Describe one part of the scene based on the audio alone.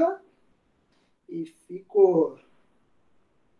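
A man speaks briefly and calmly nearby.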